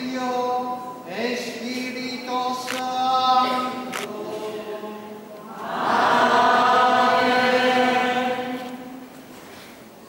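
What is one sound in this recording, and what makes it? A crowd of men and women sings slowly in a large echoing hall.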